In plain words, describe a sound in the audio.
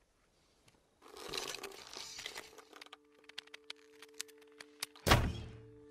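A bowstring creaks as a longbow is drawn back.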